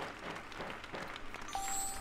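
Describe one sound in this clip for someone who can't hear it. A prize wheel clicks rapidly as it spins.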